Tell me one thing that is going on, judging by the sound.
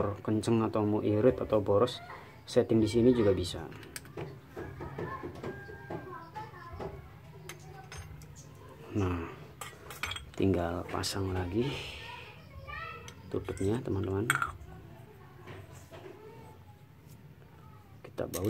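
Small metal parts click and tap as hands handle a carburetor.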